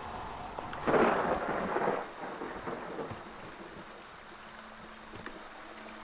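Light rain patters steadily.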